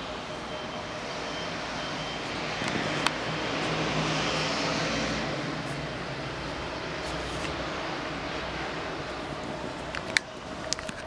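Distant city traffic hums steadily outdoors.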